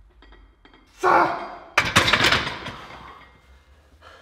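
A man breathes hard and groans after the effort.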